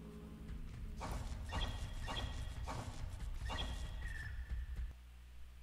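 Footsteps patter quickly on rough ground.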